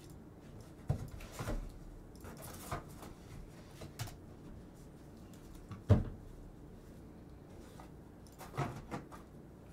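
Plastic card cases click and knock on a table.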